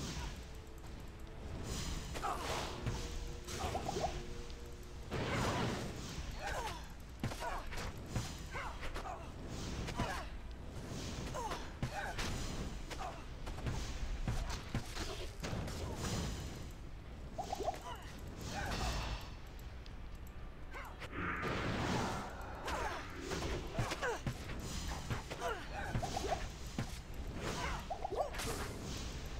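Magic spells crackle and burst again and again.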